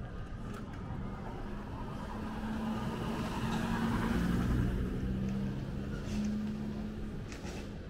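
A small truck's engine hums as it drives slowly past.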